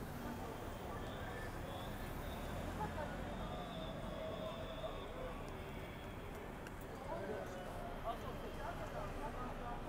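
Cars drive past close by on a city street.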